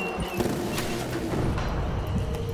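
A futuristic gun hums and fires with a crackling burst.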